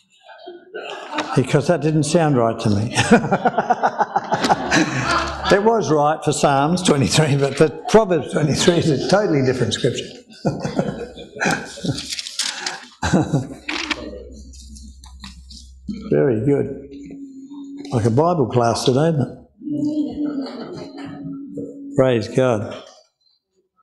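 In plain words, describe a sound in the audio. A man speaks calmly through a headset microphone in a room with some echo.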